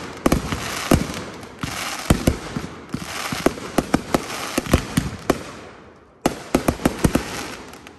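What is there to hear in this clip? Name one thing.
Fireworks bang and crackle in rapid bursts.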